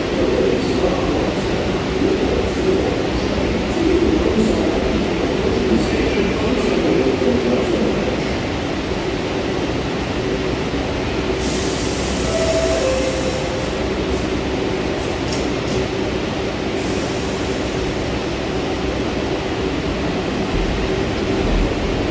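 A subway train rumbles toward the platform, echoing through the underground station.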